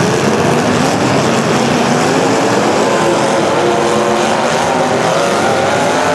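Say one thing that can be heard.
Car engines roar and rev loudly in a large echoing arena.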